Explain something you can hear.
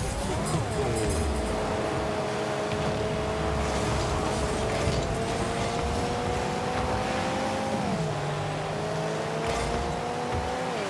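A game car's engine hums steadily and shifts in pitch as it speeds up.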